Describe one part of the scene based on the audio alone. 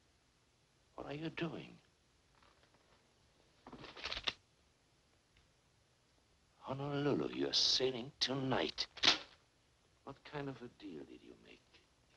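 A man speaks slowly and clearly, close by.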